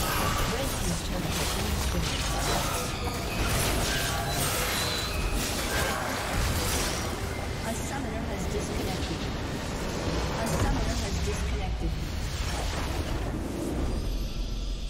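Magic blasts and blows clash in a hectic battle.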